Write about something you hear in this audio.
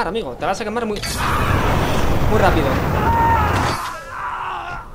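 A flamethrower roars with a loud rushing blast.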